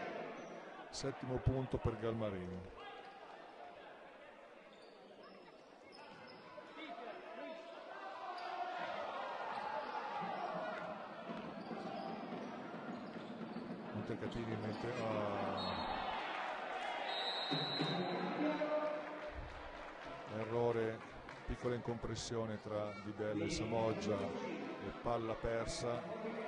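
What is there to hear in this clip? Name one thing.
Spectators talk and call out in a large echoing hall.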